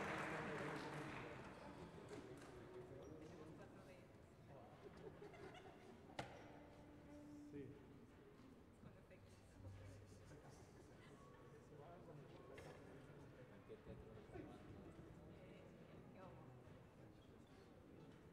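A string orchestra plays softly in a large echoing hall.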